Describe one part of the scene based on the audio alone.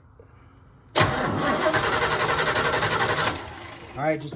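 An engine's starter cranks steadily with a rapid whirring chug.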